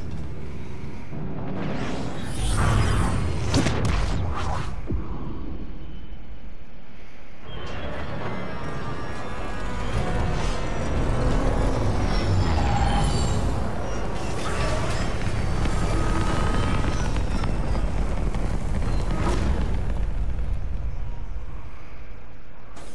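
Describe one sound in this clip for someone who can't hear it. A spacecraft's engines roar as it flies past and descends to land.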